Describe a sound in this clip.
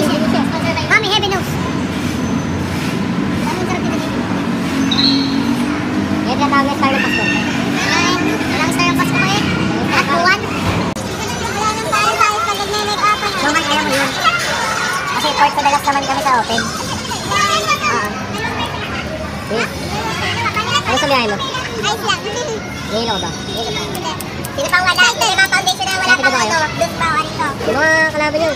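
Several young people chatter and laugh around.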